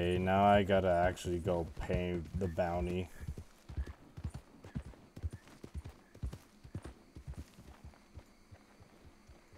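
Horse hooves thud on soft ground.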